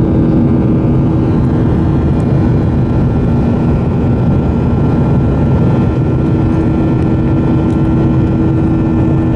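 A jet engine roars steadily with a low drone.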